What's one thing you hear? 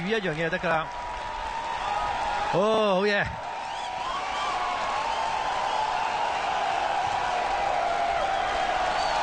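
A large crowd cheers and claps in an open stadium.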